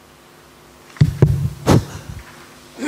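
Knocks and bumps sound close to a microphone.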